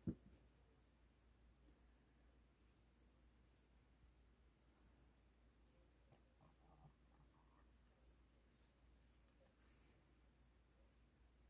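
Crocheted yarn rustles softly as fingers handle it.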